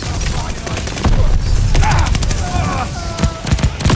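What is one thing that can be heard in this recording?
An explosion booms and fire roars.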